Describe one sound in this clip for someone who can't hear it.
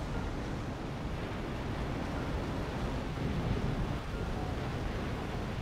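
A large explosion rumbles below.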